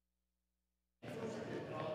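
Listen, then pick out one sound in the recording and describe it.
A man speaks into a microphone, heard over loudspeakers in a large hall.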